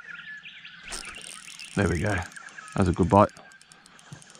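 A fishing rod swishes and its line rustles as it is handled.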